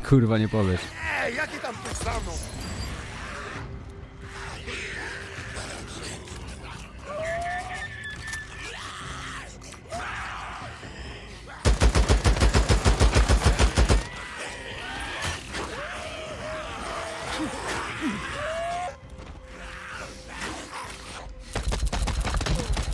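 Zombies snarl and groan nearby.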